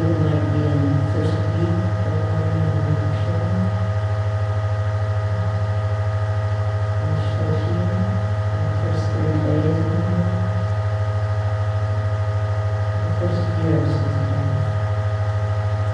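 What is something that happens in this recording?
An older woman speaks calmly through a microphone and loudspeaker, with pauses.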